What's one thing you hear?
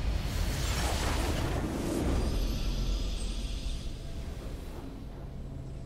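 A triumphant game victory sound bursts out loudly and fades.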